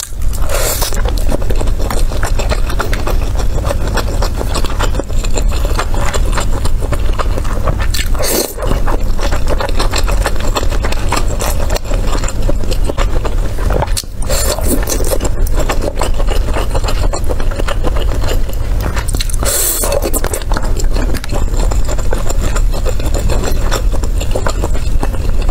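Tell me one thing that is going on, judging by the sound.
A young woman chews food wetly and noisily, close to a microphone.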